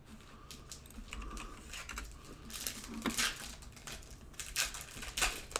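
Card packs rustle and crinkle as hands handle them close by.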